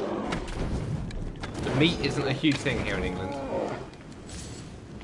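Flames burst and crackle.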